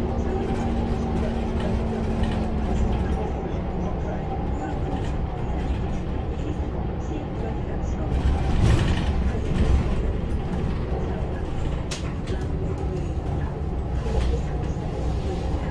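The bus body rattles and creaks as it drives.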